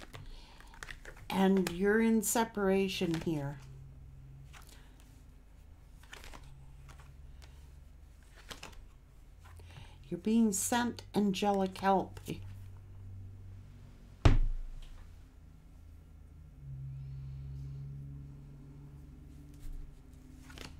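Cards rustle and slap softly as they are shuffled.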